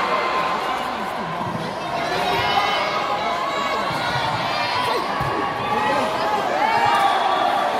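Young women players call out to one another.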